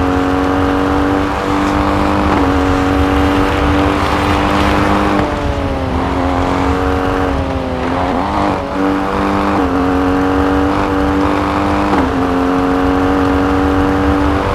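A rally SUV's engine roars at high revs.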